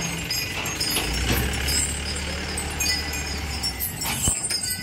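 A truck engine idles with a low hum.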